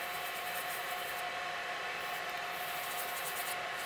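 Compressed air hisses in short bursts.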